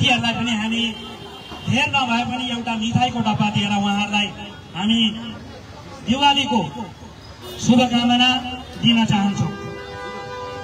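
A man speaks loudly through a microphone and loudspeaker, outdoors.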